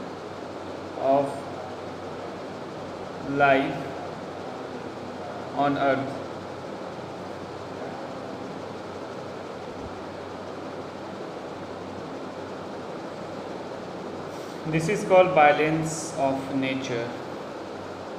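A young man speaks close to a microphone in short bursts.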